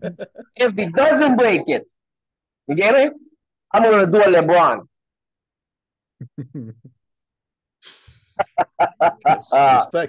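Men laugh over an online call.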